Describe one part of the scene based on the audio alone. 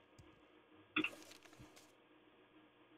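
Paper rustles as a book is opened.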